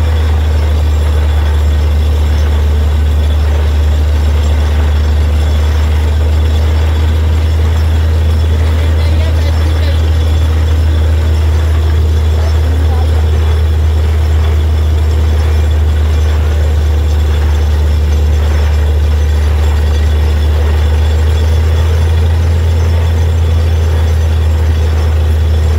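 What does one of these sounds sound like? A drilling rig's engine drones loudly and steadily.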